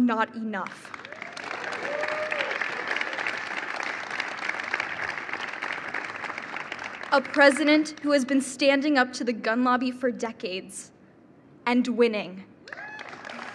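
A young woman speaks with emotion into a microphone.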